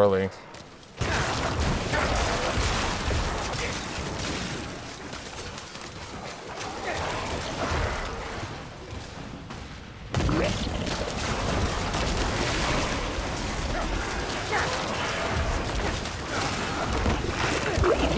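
Spells and blows crash and explode in a fierce fight.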